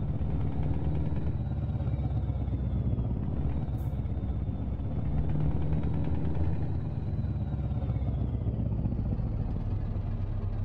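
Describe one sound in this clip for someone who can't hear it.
A truck engine rumbles low and steady as it idles and creeps along.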